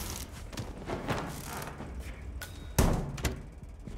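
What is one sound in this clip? A heavy lid bangs shut.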